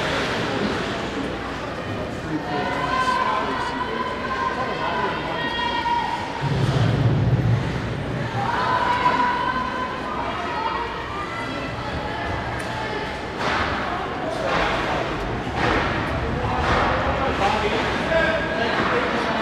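Ice skates scrape and carve across ice in an echoing rink.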